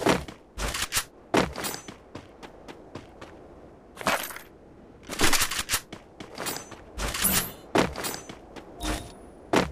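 Footsteps run over hard ground outdoors.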